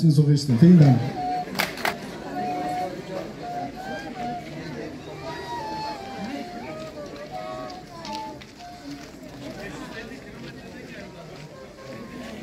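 A reed instrument plays a slow melody.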